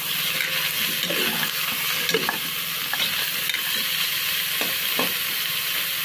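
A metal spoon scrapes and knocks against a metal pot while stirring food.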